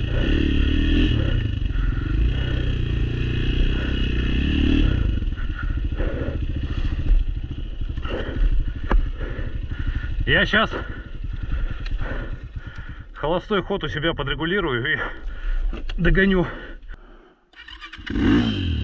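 A dirt bike engine rumbles close by, revving up and down.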